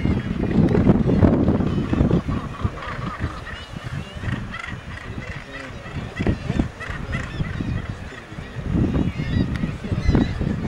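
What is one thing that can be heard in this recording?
Northern gannets call harshly across a cliff colony.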